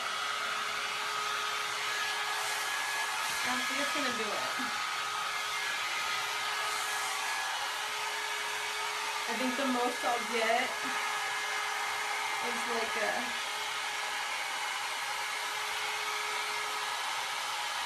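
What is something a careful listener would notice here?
A hair dryer blows with a steady whirring hiss.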